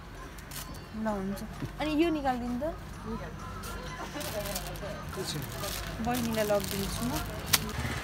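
Plastic wrappers rustle and crinkle as they are handled.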